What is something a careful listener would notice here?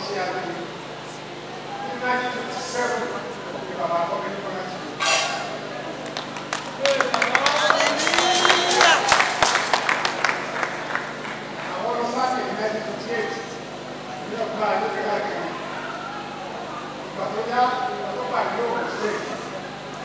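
Another elderly man answers calmly, off the microphone.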